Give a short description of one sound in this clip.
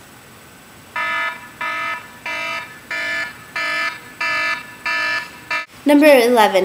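A phone rings in short, evenly repeated tones.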